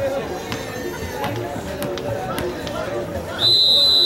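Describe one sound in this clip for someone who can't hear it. A ball bounces on hard ground.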